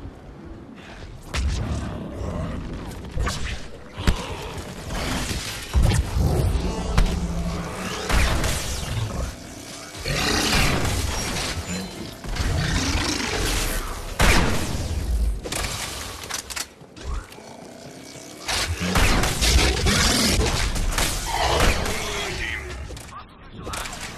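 Video game rifle shots crack during a battle.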